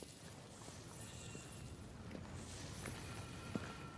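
Footsteps crunch on hard ground.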